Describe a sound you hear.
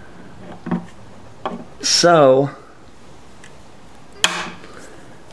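Metal pliers click and snap against a guitar fret.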